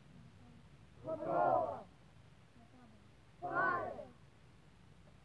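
A teenage boy shouts loudly nearby.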